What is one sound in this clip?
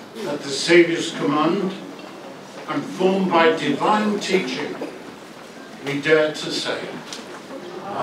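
A man chants alone, amplified through a loudspeaker outdoors.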